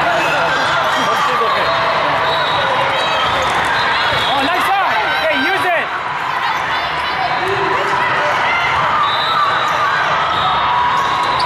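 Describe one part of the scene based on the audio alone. A volleyball is struck with dull thumps.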